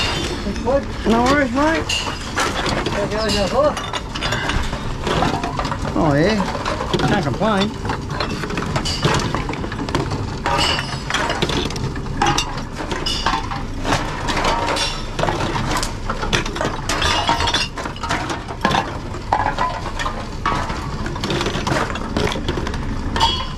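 Cans and plastic bottles clatter and rattle as they are fed into a recycling machine.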